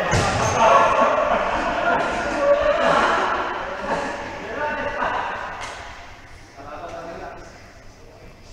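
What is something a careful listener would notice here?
Young men shout and call out to each other in a large echoing hall.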